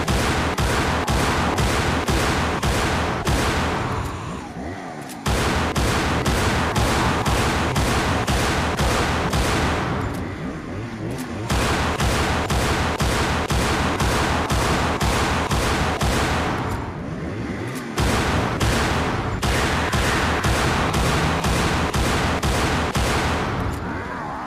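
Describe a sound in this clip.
A pistol fires rapid shots in quick bursts.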